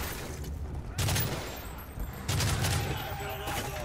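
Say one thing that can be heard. Rifles fire in bursts.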